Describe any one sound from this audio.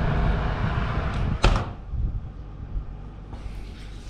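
An oven door shuts with a thud.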